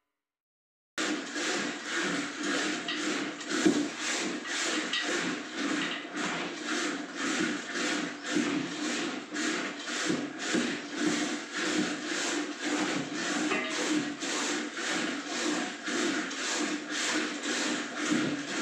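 A wooden churn swishes and sloshes rhythmically in a metal pot.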